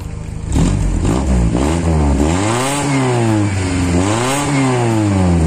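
A motorcycle engine revs up and down several times close by.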